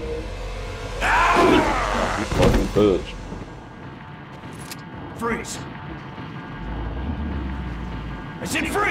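A young man talks into a nearby microphone.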